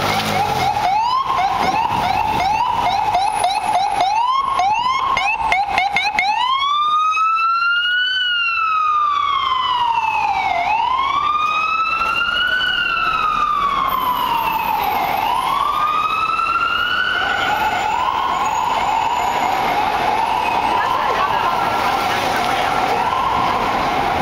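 An ambulance siren yelps rapidly, then wails slowly up and down as it passes close by.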